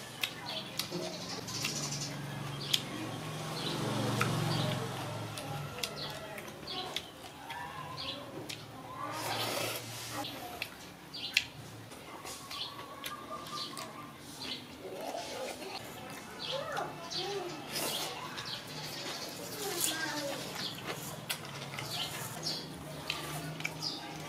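A man chews and smacks his lips.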